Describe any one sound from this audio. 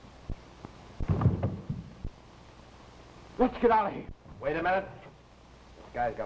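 A middle-aged man speaks, heard through an old muffled recording.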